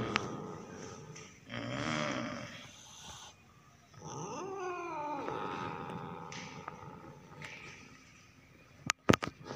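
A cat hisses and growls close by.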